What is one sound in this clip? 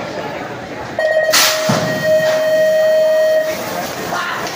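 Electronic start tones beep loudly from a loudspeaker.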